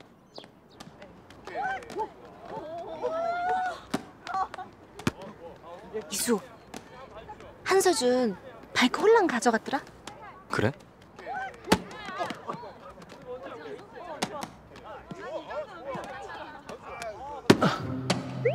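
Young people shout and chatter outdoors during a ball game.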